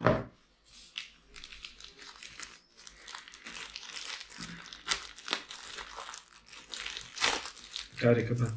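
Plastic wrapping crinkles as hands unwrap a small part.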